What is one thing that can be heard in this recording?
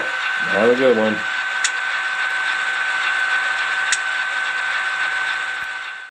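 A model train's motors hum steadily as it runs along the track.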